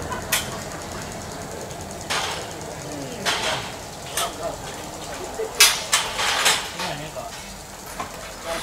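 Metal poles clank and knock on scaffolding.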